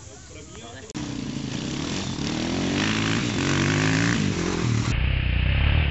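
Several dirt bike engines idle and rev together.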